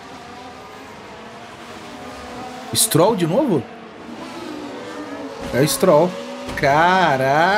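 Racing car engines drone steadily.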